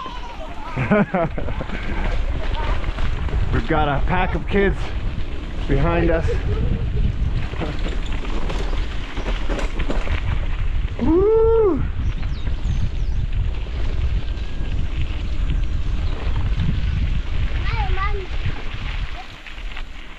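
Wind buffets the microphone outdoors while riding.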